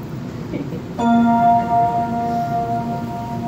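An electronic keyboard plays a sustained chord.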